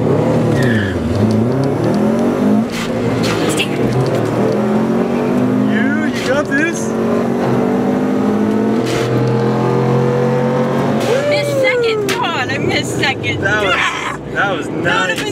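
A car engine roars and revs up and down through the gears.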